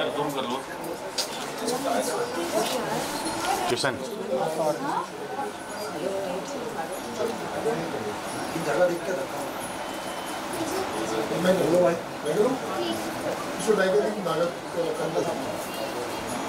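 Adult men and women talk over one another nearby.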